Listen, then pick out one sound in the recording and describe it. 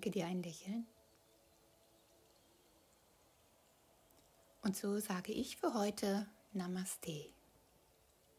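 A woman speaks calmly and softly close by.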